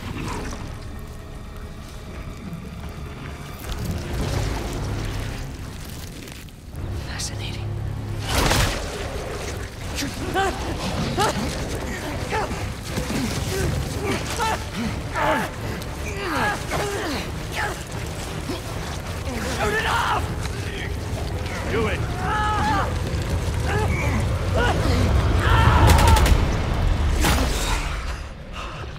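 Fires crackle and roar.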